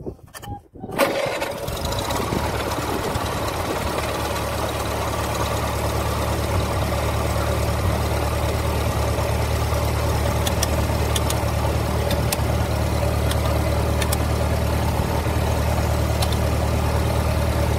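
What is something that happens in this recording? An old tractor engine idles with a steady low rumble.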